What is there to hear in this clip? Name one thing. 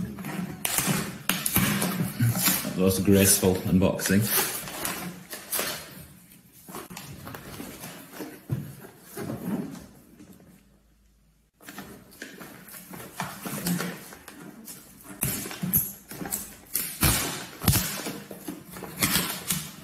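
Plastic wrap crinkles under fingers.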